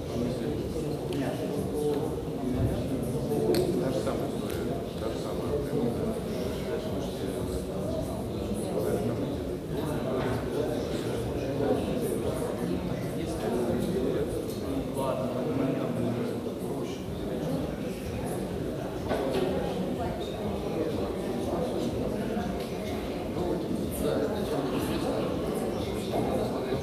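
A crowd of men and women chatter all around in a large room.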